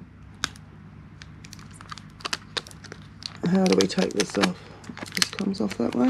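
Plastic film crinkles as it is peeled off a phone.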